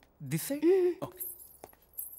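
A young woman exclaims in a rising, playful voice.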